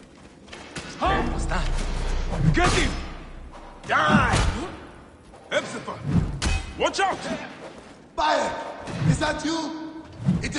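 A heavy mace swings and strikes with dull thuds.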